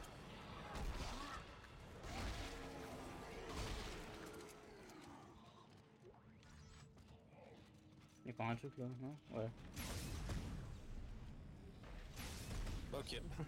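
Guns fire in short bursts.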